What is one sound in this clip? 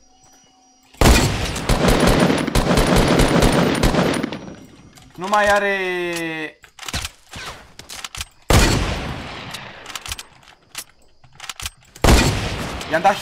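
Rifle shots crack loudly in a video game.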